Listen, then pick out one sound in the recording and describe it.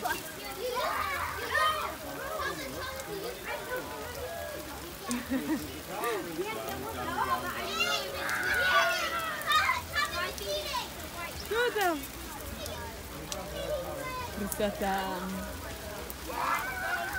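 A young child talks and squeals excitedly nearby.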